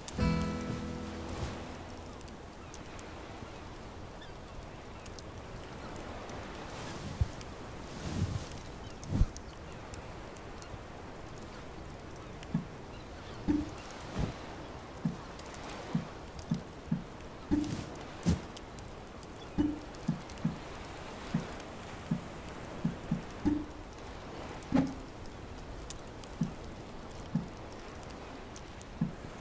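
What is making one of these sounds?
A fire crackles softly close by.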